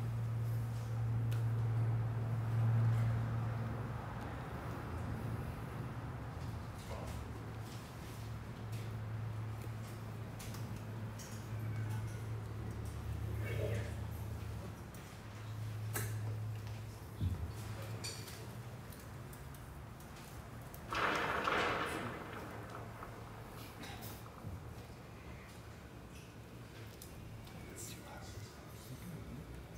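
An electric bass plays a jazz bass line.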